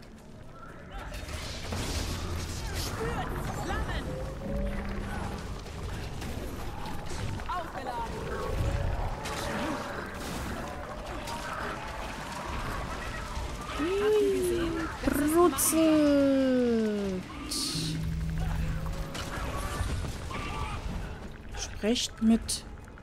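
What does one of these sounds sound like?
Fiery spell blasts and explosions crackle and boom in rapid bursts.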